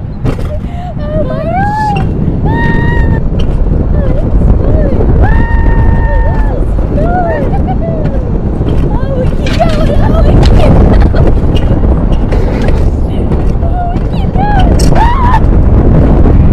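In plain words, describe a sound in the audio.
Young women scream and shriek with excitement close by.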